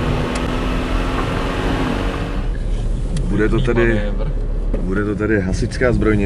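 A car engine hums steadily as a car drives along a road, heard from inside.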